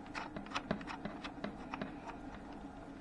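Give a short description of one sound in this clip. Metal probe tips tap and click against terminals.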